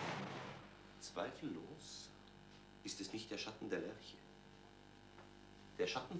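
A middle-aged man reads aloud calmly and expressively.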